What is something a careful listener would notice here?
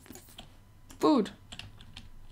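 A chicken squawks.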